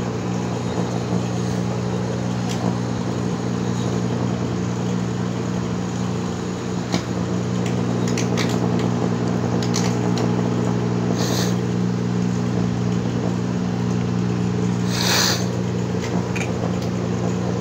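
A plasma flame from a coil buzzes with a loud, steady hum.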